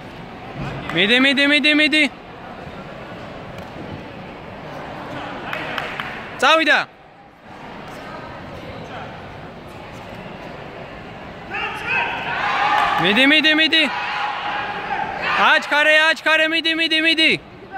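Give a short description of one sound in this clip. A young man shouts sharp, drawn-out cries in a large echoing hall.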